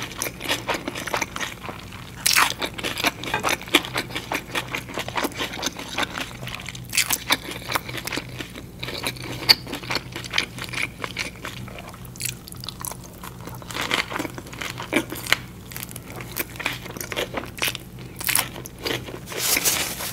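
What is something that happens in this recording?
A woman chews soft food wetly and close to a microphone.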